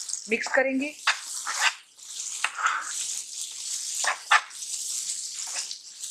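A spatula scrapes and stirs food in a pan.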